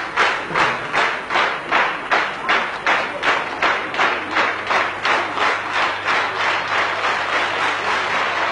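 A large audience claps in unison to a steady beat.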